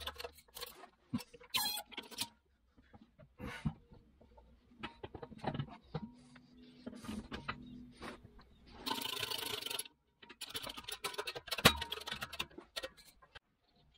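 Metal parts clink and clatter as they are handled.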